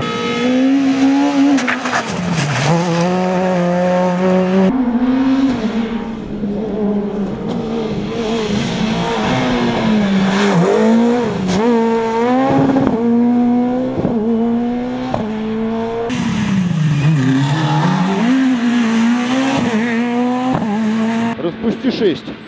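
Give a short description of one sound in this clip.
A rally car engine roars and revs up and down as the car speeds past.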